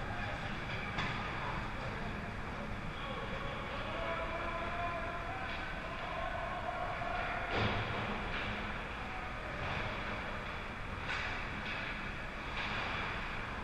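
Hockey sticks clack against a puck now and then.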